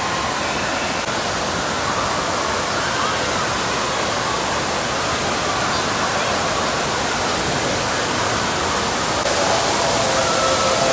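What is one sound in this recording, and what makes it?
Many children and adults chatter and shout in a large echoing hall.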